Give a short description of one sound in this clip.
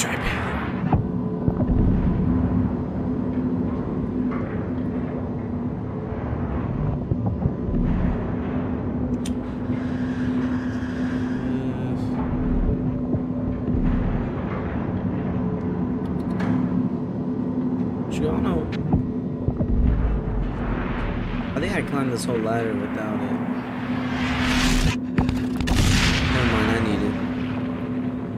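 Heavy machinery hums and rumbles steadily.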